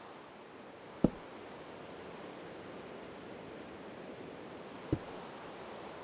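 A block is set down with a short soft thud.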